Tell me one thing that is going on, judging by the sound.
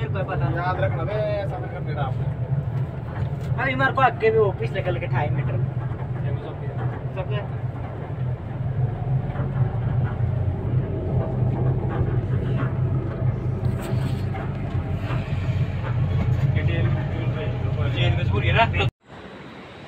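Men talk nearby in a loud, lively way.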